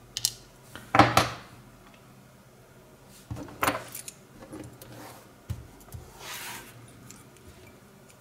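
A brass lock cylinder clinks against a plastic tray.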